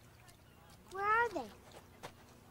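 A young girl speaks briefly.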